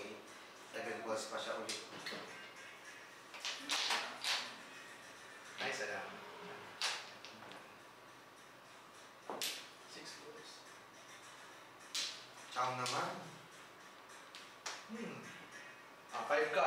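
Mahjong tiles click and clack as they are placed and moved on a table.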